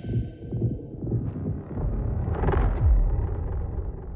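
A huge creature stomps with heavy, booming footsteps.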